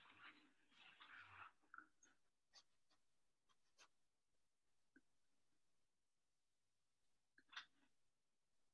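A paintbrush brushes and taps softly on paper.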